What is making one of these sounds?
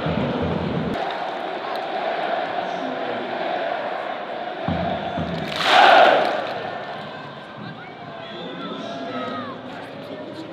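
A huge crowd roars and cheers.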